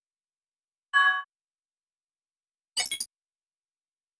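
Electronic menu blips chime.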